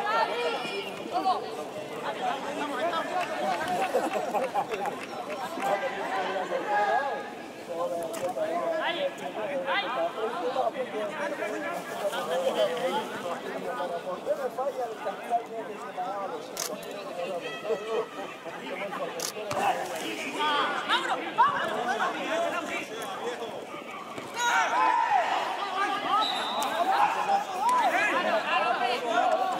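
Young men shout and call to each other outdoors across an open pitch.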